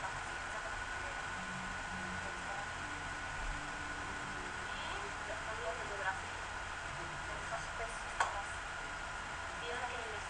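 A young woman speaks softly into a nearby microphone.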